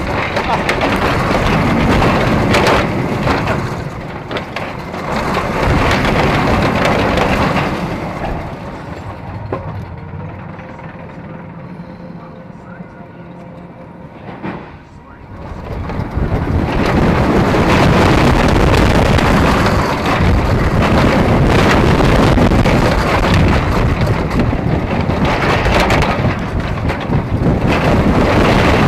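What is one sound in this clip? Wind roars loudly past in strong gusts.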